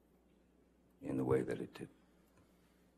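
A man speaks briefly and calmly into a microphone.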